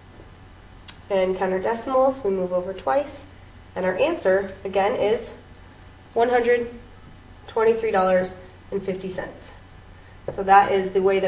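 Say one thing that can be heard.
A woman explains calmly, close by.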